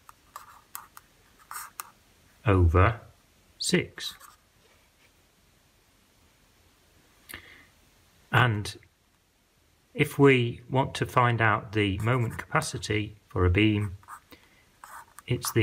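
A felt pen squeaks and scratches on paper.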